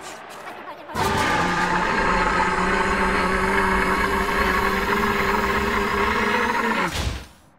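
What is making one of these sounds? A burst of energy hums and roars loudly.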